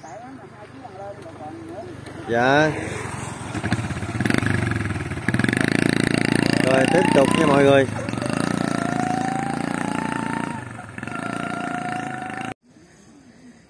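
A motorbike engine hums as the bike rides away.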